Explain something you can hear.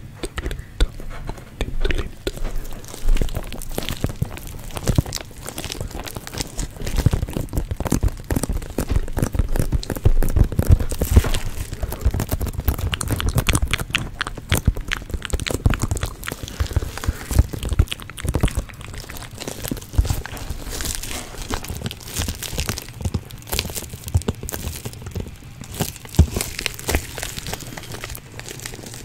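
Fingernails tap and scratch on a plastic case very close to a microphone.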